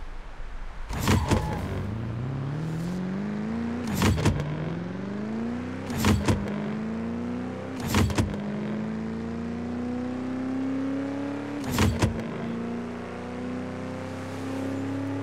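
A car engine revs up hard and climbs through the gears.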